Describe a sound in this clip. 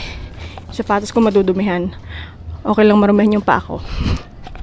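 A young woman speaks close into a microphone.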